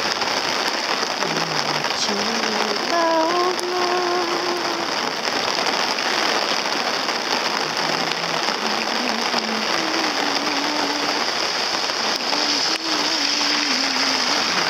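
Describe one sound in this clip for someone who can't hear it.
Rain falls on wet pavement outdoors.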